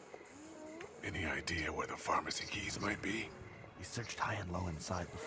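A man asks a question calmly, close up.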